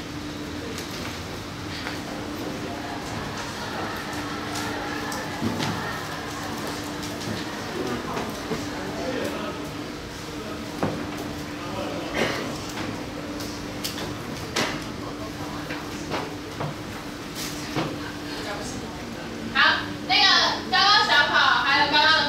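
A woman speaks steadily through a small microphone, with some room echo.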